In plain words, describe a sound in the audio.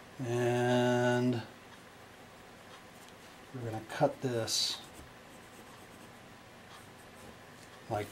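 A pencil scratches lightly on card.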